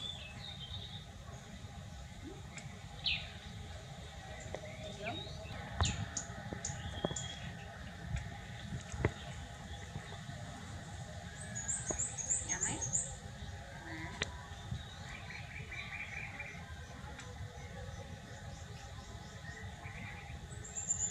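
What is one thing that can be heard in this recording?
Baby monkeys squeak with short, high chirps.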